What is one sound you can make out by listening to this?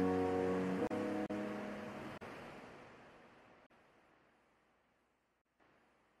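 A cheerful victory jingle plays and slowly fades away.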